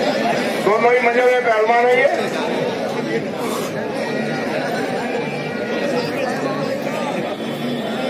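A large outdoor crowd chatters and murmurs.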